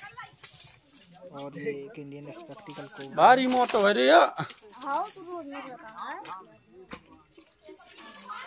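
Dry branches rustle and crack as a man pulls at bushes.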